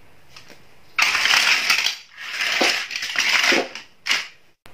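Plastic toy pieces clatter against each other.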